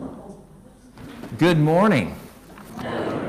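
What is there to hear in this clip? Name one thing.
A man speaks through a microphone in an echoing room.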